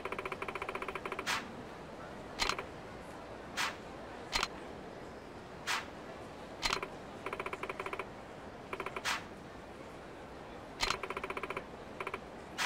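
Rapid electronic blips chatter in short bursts.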